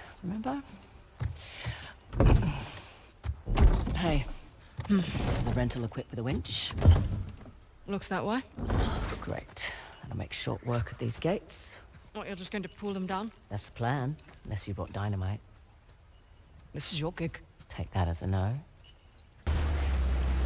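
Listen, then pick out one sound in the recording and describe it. A second young woman answers calmly close by.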